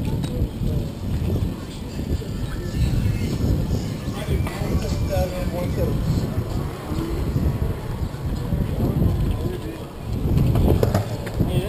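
Wind rumbles and buffets against a microphone while riding a bicycle outdoors.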